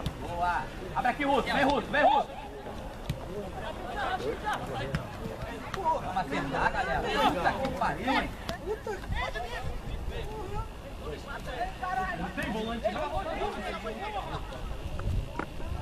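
A football thuds as it is kicked across grass.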